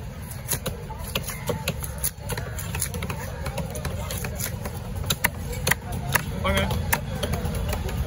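A heavy knife chops through fish onto a wooden block with sharp thuds.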